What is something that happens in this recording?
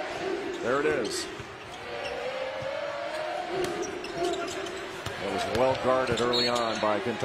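A large crowd murmurs and cheers in an echoing arena.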